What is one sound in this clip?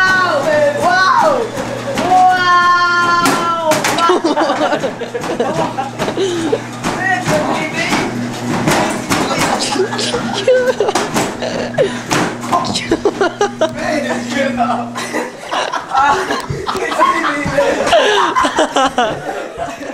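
Young boys shout and laugh with excitement.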